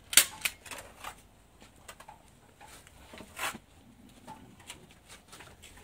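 Plastic mesh rustles and crinkles as hands press it into place.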